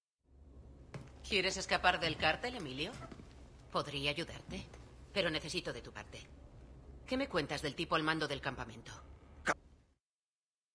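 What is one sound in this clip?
A woman speaks calmly and closely.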